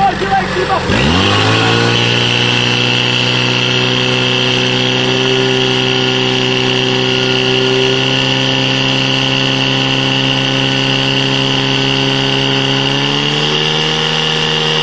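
A portable pump engine starts up and runs with a loud, steady roar.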